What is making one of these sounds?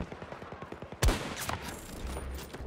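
A sniper rifle fires a single shot that echoes across open terrain.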